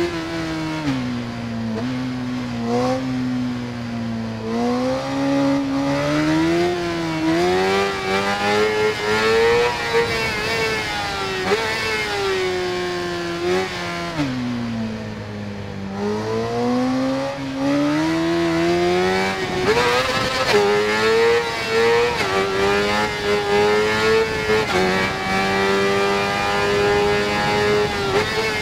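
An inline-four sport bike engine revs high, its pitch rising and dropping through gear changes.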